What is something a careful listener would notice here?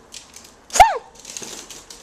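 A small dog gives a sharp, high yelp.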